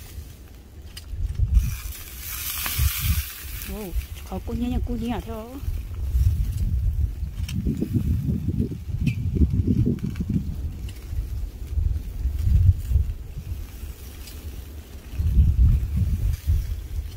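Metal tongs clink against a grill grate.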